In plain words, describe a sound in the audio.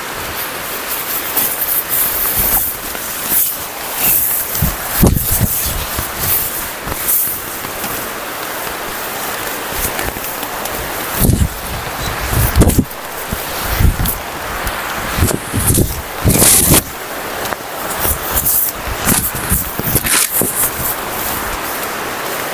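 A river rushes steadily nearby.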